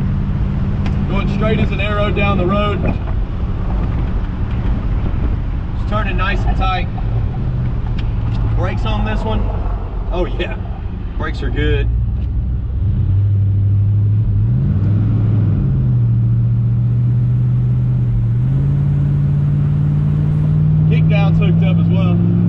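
A man speaks casually from close by.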